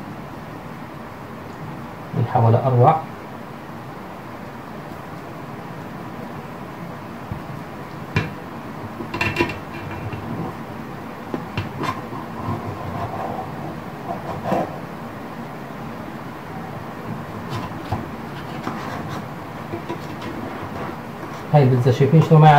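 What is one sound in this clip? A wooden spatula scrapes and taps against a metal baking pan.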